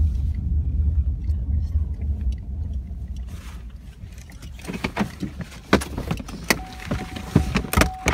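A car engine hums low inside the cabin.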